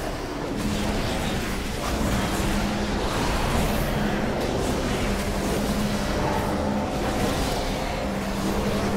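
Magic spells and weapon hits crackle and clash in a battle.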